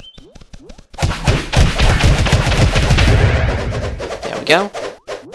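Sword blows land with heavy thuds in a fight.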